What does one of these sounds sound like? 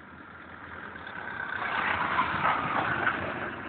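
Tyres crunch and slide on snow.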